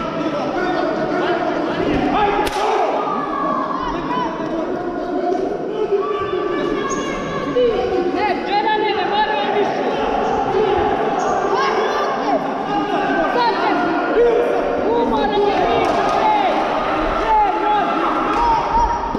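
A crowd of spectators chatters and shouts throughout a large echoing hall.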